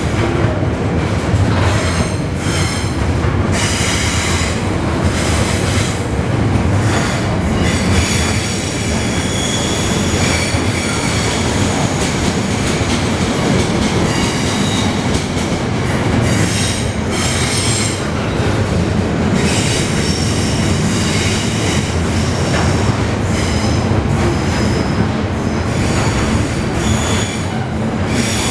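A long freight train rumbles past close by, loud and steady.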